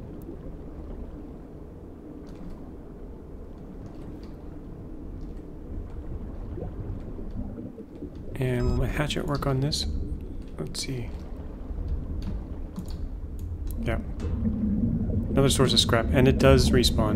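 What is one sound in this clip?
Deep water rumbles and murmurs steadily all around.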